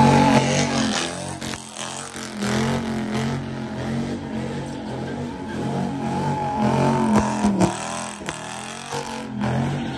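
A car engine roars and revs loudly close by.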